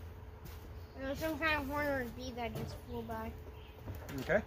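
A small boy talks nearby.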